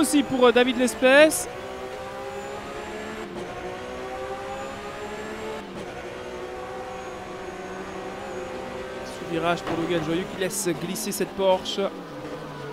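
A racing car engine roars steadily, its pitch rising and falling with gear changes.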